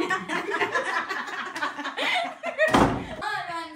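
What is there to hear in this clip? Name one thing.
A young girl laughs.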